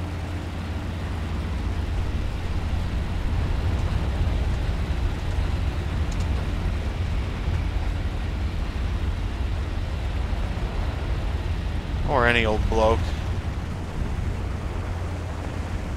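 Propeller engines drone steadily with a low roar.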